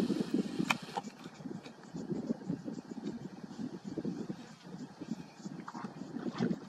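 Water splashes softly as animals shift in a shallow pool.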